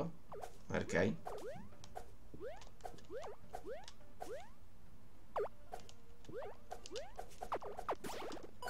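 Short chiptune blips chirp upward again and again as a game character jumps.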